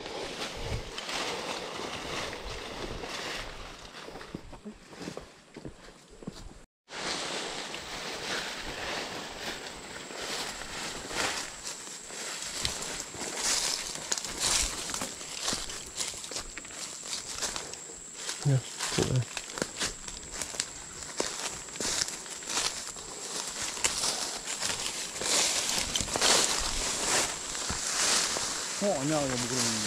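Footsteps crunch and rustle through dry leaves and undergrowth.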